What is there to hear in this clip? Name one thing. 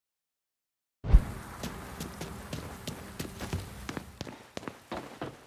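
Footsteps run quickly on a hard floor.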